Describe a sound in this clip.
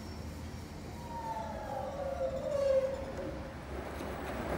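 A washing machine motor whines down in pitch as the spin slows.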